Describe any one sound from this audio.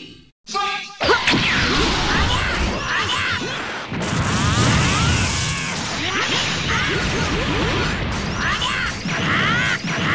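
Punches and kicks land with sharp hits.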